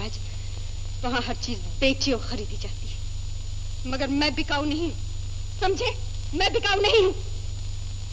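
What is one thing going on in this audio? A young woman speaks earnestly, close by.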